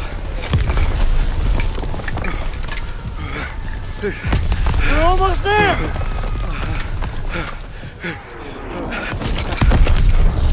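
Metal parts click as a weapon is assembled.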